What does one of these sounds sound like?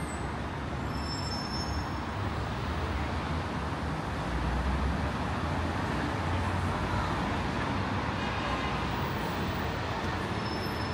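A steady low hum of distant city traffic fills the open air.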